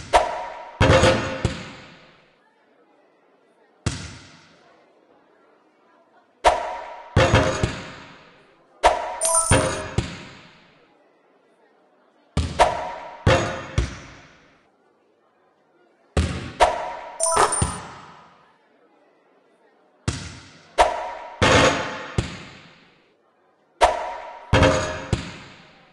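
A basketball bounces with sharp, echoing thuds.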